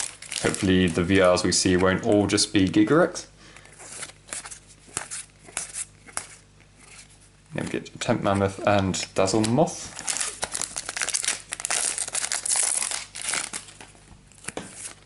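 Playing cards slide and flick against each other in hands.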